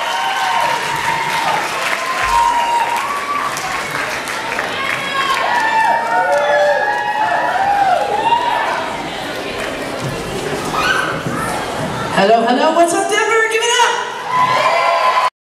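A band plays rock music loudly in a large hall.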